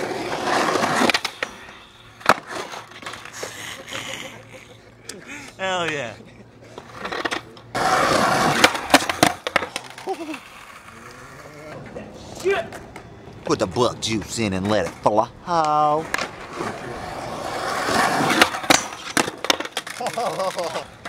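A skateboard clacks and slams onto concrete.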